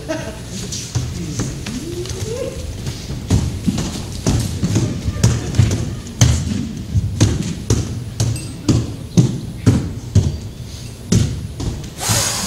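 Feet thud and patter as dancers move across a stage.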